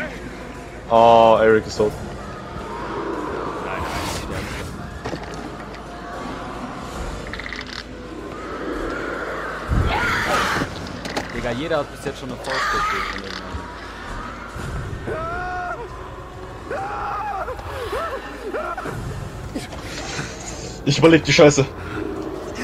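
A young man shouts loudly in fright.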